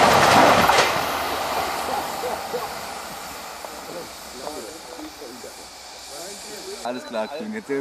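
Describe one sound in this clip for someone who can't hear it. A small steam locomotive chugs slowly overhead.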